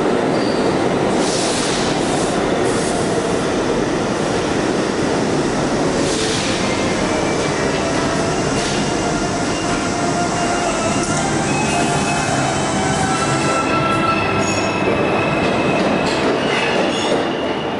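A subway train hums loudly while standing still in an echoing underground station.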